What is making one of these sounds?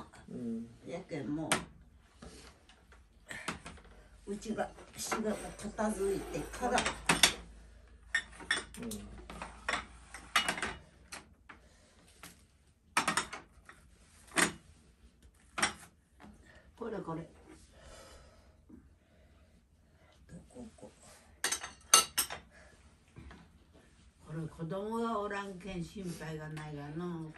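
An elderly woman talks calmly nearby.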